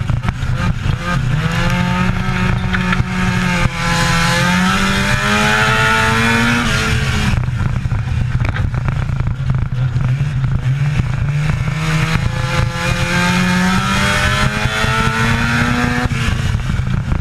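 A race car engine roars loudly from close by, rising and falling in pitch as the car goes around the corners and down the straights.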